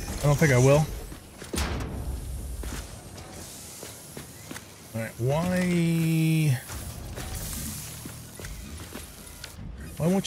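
A middle-aged man talks with animation into a close microphone.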